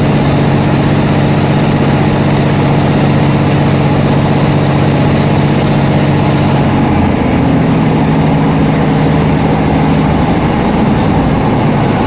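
A train's motor hums, changing pitch and then fading.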